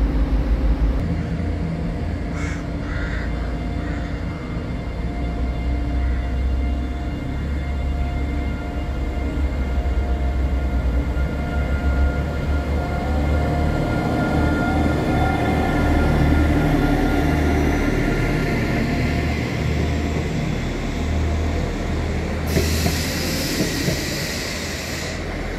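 A train rolls past on the rails, wheels clattering and squealing.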